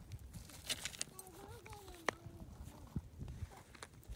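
Loose stones clatter as a rock is lifted from stony ground.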